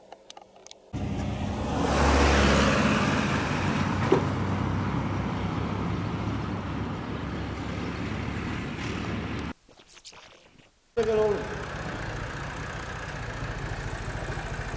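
A tractor engine rumbles loudly nearby.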